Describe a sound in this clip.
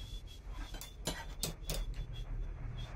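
Metal tools clink sharply as one is picked up from a pile.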